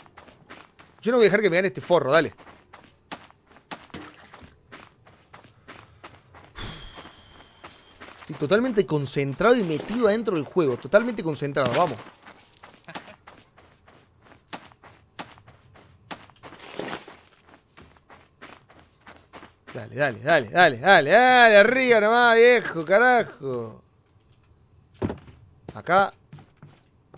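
A young man speaks animatedly into a close microphone.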